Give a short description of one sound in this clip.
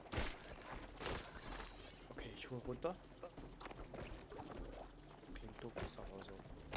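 Game weapons fire in quick bursts.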